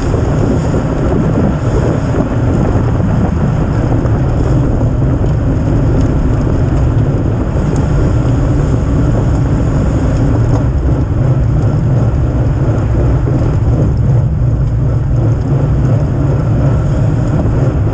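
Wind rushes loudly over a microphone outdoors.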